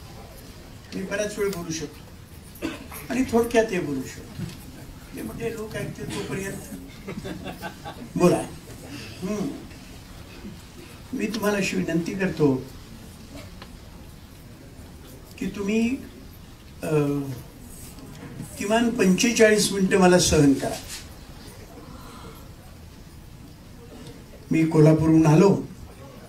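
An elderly man speaks slowly into a microphone, with pauses.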